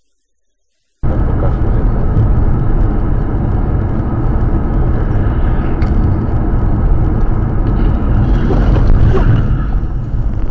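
Rain patters on a car windshield.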